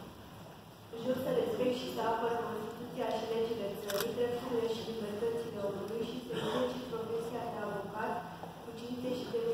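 A woman reads out through a microphone.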